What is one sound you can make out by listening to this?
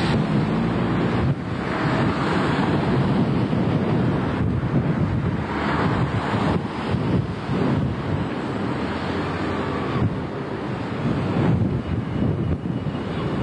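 Cars pass by close, their tyres hissing on the road.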